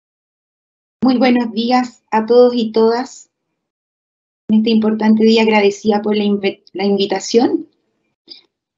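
A woman speaks warmly over an online call.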